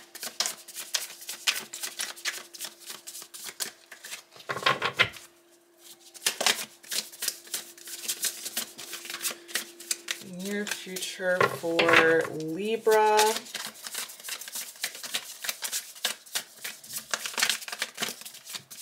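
Playing cards riffle and slap softly as a deck is shuffled close by.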